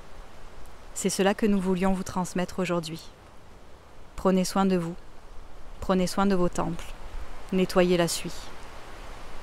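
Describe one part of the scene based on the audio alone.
A young woman speaks softly and calmly, close to a microphone.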